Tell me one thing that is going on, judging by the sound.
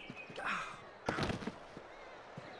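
A body falls to the ground with a heavy thud.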